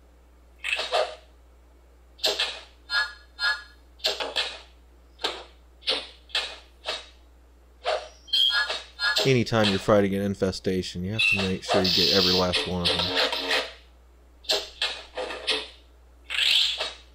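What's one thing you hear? Swords clash and spells crack in short, sharp bursts.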